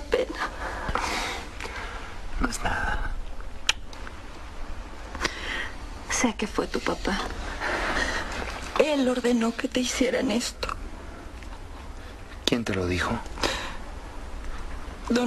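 A woman speaks softly and emotionally nearby.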